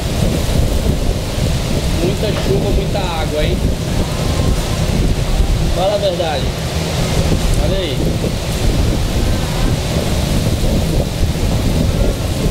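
Water splashes and churns against a ship's hull.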